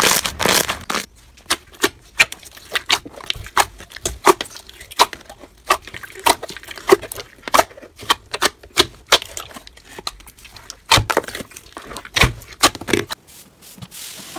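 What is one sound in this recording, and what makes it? Fingers press and squish sticky slime with sharp pops.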